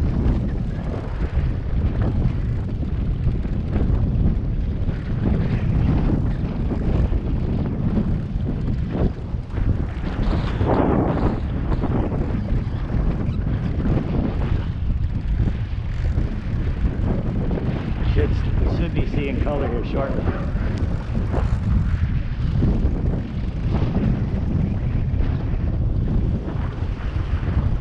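Boat engines rumble steadily.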